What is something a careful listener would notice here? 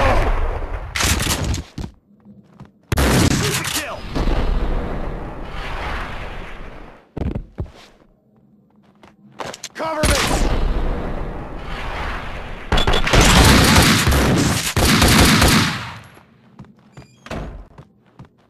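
Gunshots fire in loud bursts with echoing tails.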